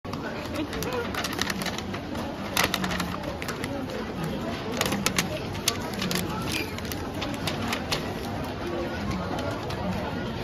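Paper rustles and crinkles as it is folded around a box.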